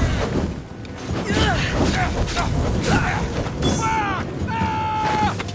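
Weapons clash and thud in a close fight.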